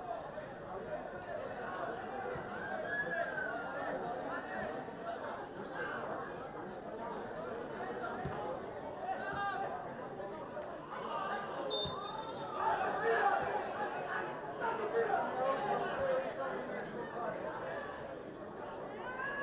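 A crowd of spectators chatters and cheers in an open stadium.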